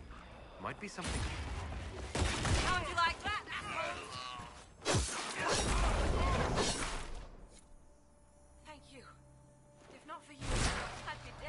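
Magic blasts crackle and boom.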